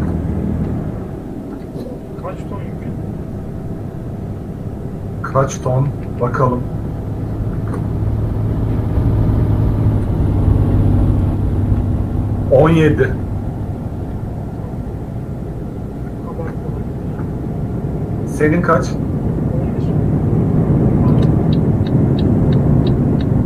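A truck engine hums steadily while driving.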